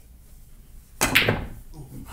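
A cue strikes a pool ball with a sharp crack.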